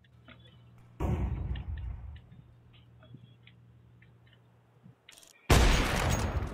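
A sniper rifle fires with a loud crack.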